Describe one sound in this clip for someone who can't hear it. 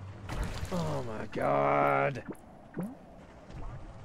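Bubbles gurgle and rise through water.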